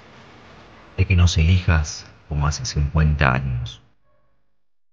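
An elderly man speaks calmly and close up.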